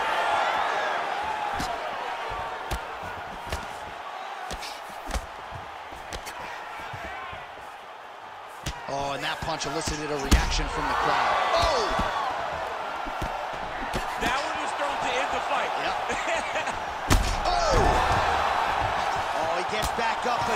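Punches thud against bodies.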